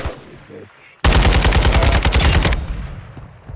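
A rifle fires a rapid, loud burst.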